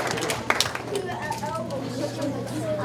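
A young boy speaks into a microphone.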